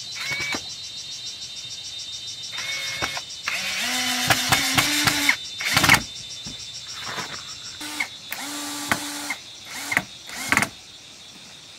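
A cordless drill whirs in short bursts, biting into hollow bamboo.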